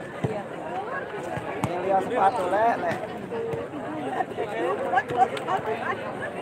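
A volleyball is struck by hand with a sharp slap.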